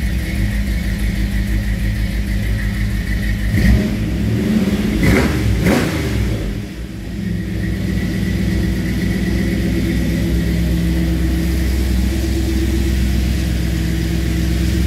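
A car engine idles with a steady, lumpy rumble close by.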